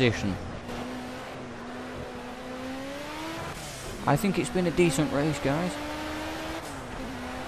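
A racing car engine hums steadily and its pitch rises as it speeds up.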